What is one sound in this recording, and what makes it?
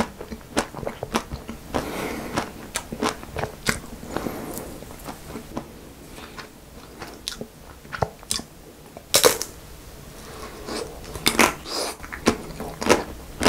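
A young man bites and crunches ice cream close to a microphone.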